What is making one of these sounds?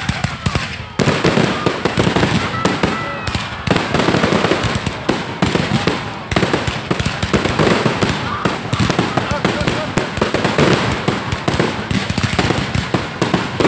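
Fireworks crackle rapidly.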